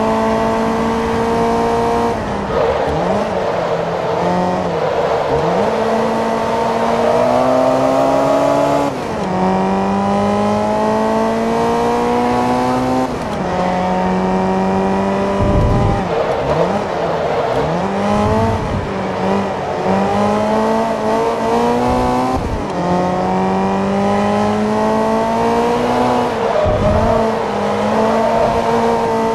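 A racing car engine roars, revving up and dropping as the gears shift.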